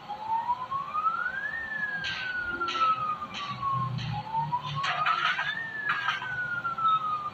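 A police siren wails, rising and falling slowly.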